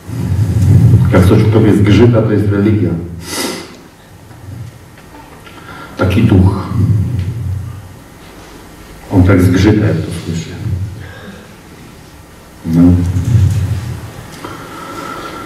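A man speaks calmly through a microphone in a large echoing hall, with pauses.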